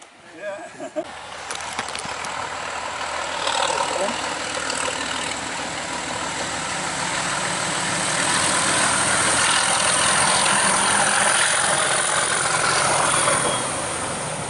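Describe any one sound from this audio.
A diesel locomotive engine roars, growing louder as it approaches.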